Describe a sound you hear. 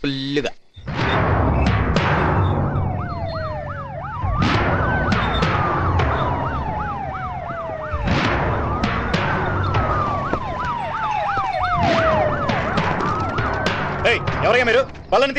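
A siren wails as vehicles approach.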